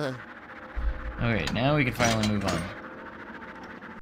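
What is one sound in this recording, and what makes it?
A key turns and clicks in a lock.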